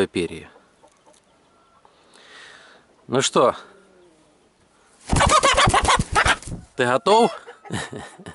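A rooster squawks loudly, up close.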